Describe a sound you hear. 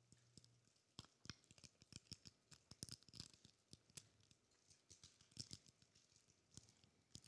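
Paper rustles and clicks close to a microphone.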